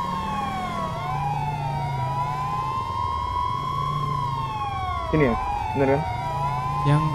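A car engine hums low.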